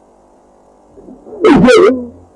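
A large dog barks loudly.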